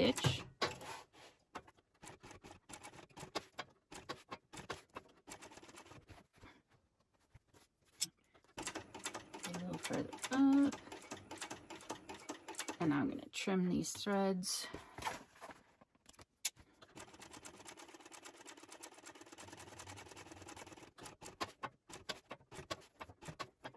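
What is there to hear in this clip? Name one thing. A sewing machine stitches in bursts of rapid clicking.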